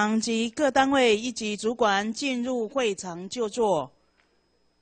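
A man speaks loudly over a loudspeaker in an echoing hall.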